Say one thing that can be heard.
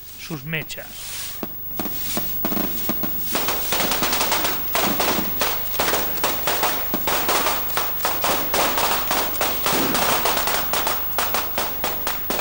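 Firecrackers burst and crackle rapidly nearby, outdoors.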